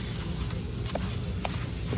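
A kitten laps milk from a bowl.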